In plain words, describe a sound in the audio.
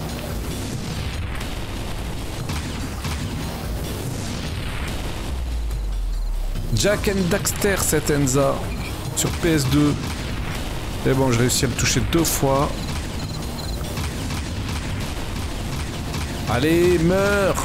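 A game character fires an energy gun in rapid bursts.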